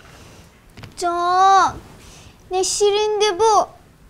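A young woman speaks with emotion close by.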